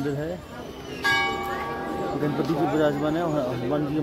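A temple bell rings out once and slowly rings on.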